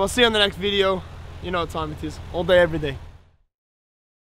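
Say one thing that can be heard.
A young man talks cheerfully and close by.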